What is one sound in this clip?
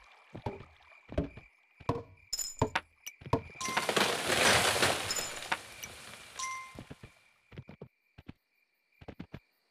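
Horse hooves clop along the ground.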